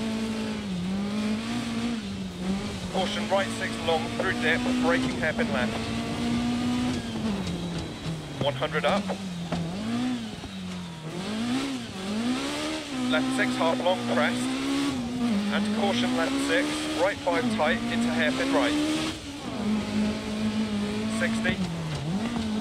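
A rally car engine roars, revving up and down as gears change.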